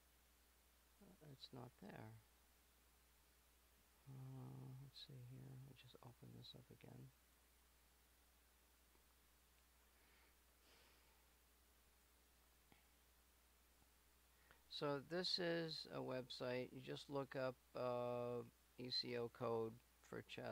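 A man speaks calmly and close to a microphone, in bursts with pauses.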